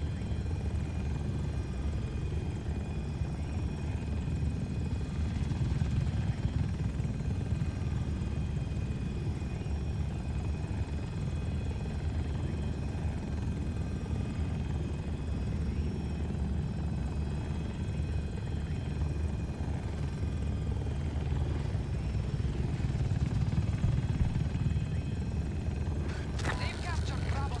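A helicopter's rotor thumps and its engine drones steadily from inside the cockpit.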